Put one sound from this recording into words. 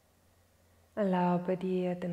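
A woman chants a long, steady tone close to a microphone.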